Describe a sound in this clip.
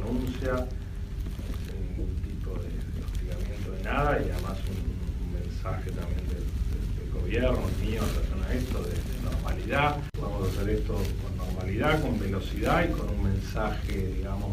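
A man speaks calmly, heard through a muffled phone recording.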